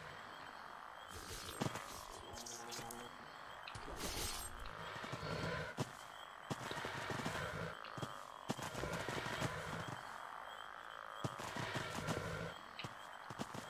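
Magic spells crackle and whoosh in short bursts.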